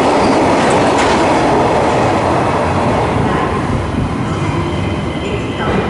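An electric commuter train approaches slowly.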